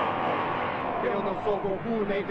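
A young man speaks tensely.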